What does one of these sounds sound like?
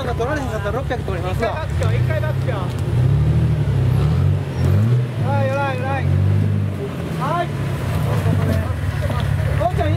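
An off-road vehicle's engine rumbles and revs unevenly up close.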